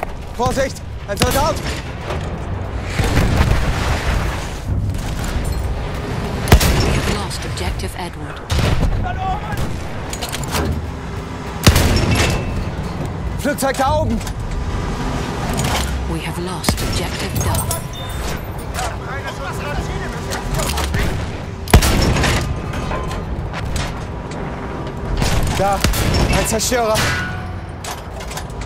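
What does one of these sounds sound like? Explosions rumble.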